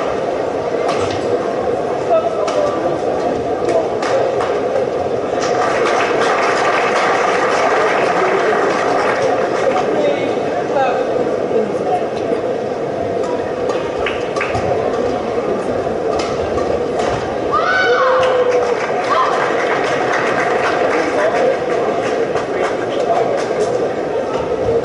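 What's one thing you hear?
A large crowd murmurs steadily in an echoing hall.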